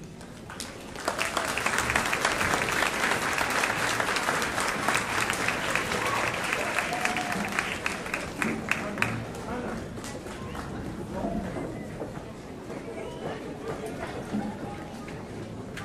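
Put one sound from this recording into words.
An audience claps loudly in a large echoing hall.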